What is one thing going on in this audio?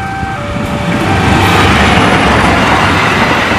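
Train wheels roar and clatter over the rails as the carriages pass close by.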